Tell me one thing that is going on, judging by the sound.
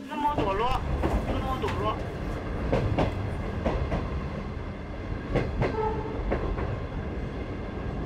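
Train wheels clack over rail joints.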